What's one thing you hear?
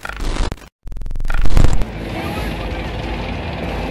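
Tank tracks clatter.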